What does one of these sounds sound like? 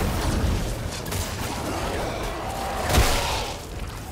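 Gunshots bang loudly.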